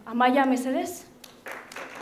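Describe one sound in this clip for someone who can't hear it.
A young woman speaks into a microphone in a large hall.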